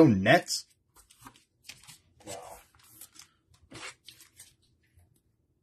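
A trading card slides into a plastic sleeve with a soft rustle.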